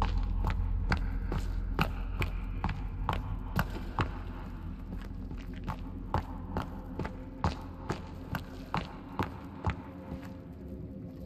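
Footsteps thud on hard rock at a steady walking pace.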